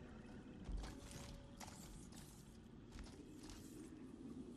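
Heavy armoured footsteps thud on rock.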